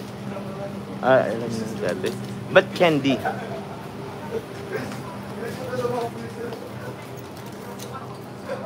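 A young man talks close by with animation.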